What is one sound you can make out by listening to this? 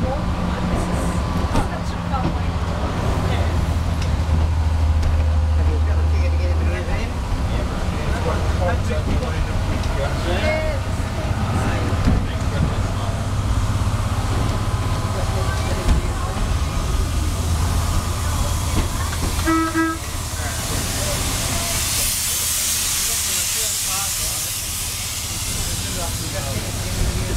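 Train wheels rumble and clatter steadily over the rails.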